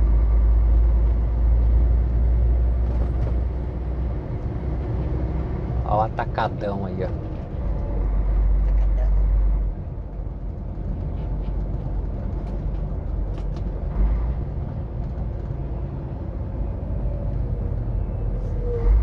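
A vehicle drives along a road, with a steady low rumble and wind buffeting.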